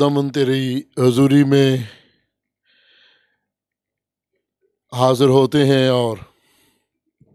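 A man speaks slowly and forcefully into a microphone, in bursts with long pauses.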